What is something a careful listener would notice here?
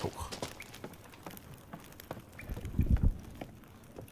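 Boots knock on wooden ladder rungs.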